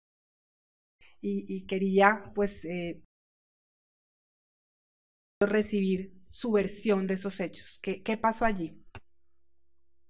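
A woman speaks calmly into a microphone.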